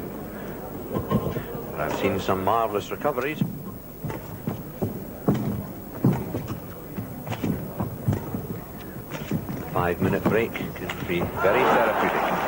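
A shuttlecock is struck with sharp pops in a large echoing hall.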